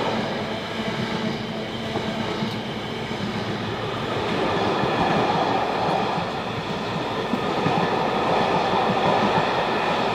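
A train rumbles past along the tracks.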